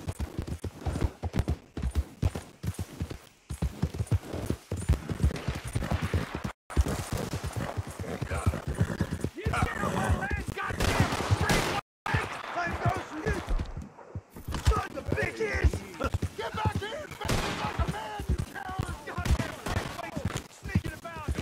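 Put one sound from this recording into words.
A horse gallops with heavy, rapid hoofbeats.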